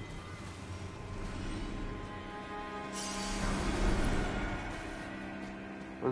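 Blades strike and thud in a fight.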